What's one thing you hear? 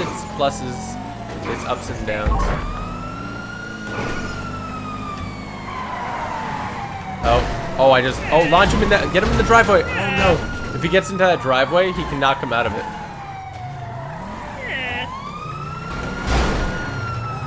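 A police siren wails, rising and falling in long sweeps.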